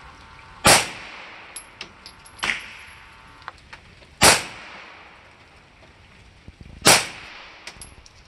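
A pistol fires loud, sharp shots that echo briefly.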